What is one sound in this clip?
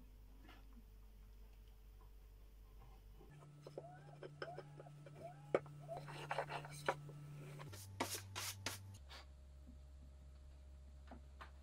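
Wooden strips knock and tap against a board.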